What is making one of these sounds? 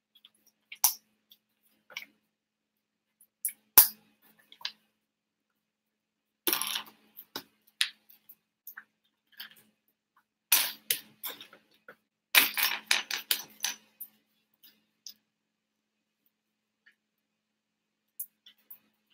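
Plastic toy bricks click and rattle on a table.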